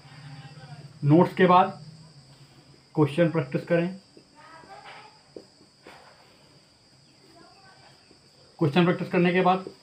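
A young man speaks close by in a calm, explaining way.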